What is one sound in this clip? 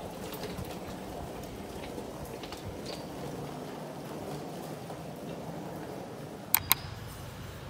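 Suitcase wheels roll over a hard floor.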